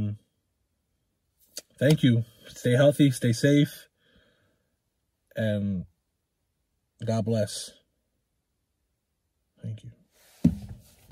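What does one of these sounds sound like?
A man speaks calmly and close by, with pauses between phrases.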